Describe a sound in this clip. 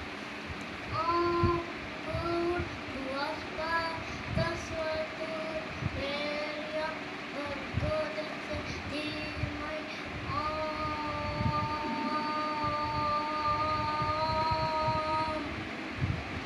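A young boy chants and hums in long, steady tones close by.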